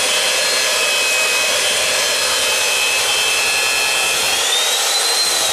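An electric hand planer whines loudly as it shaves wood, its pitch rising as it is lifted off.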